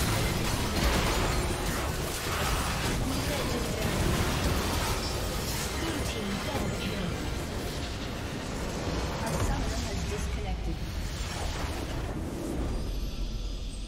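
Video game spell effects and combat blasts crash and clash rapidly.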